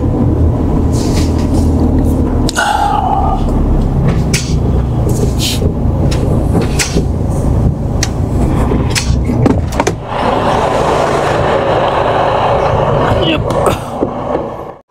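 Clicks and rattles sound in the cab as the truck moves.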